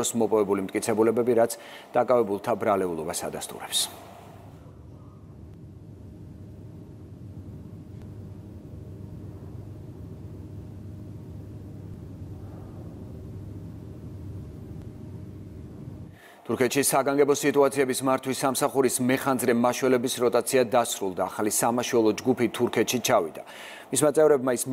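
A man reads out calmly through a microphone.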